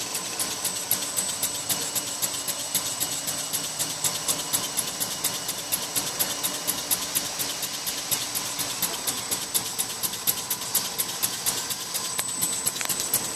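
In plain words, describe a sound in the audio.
A roller spins with a steady whir.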